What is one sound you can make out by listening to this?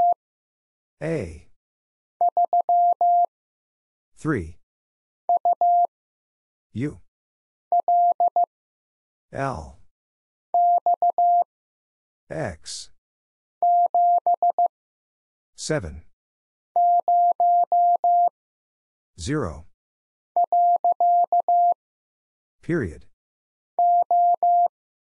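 A telegraph key beeps out short and long tones of Morse code in quick bursts.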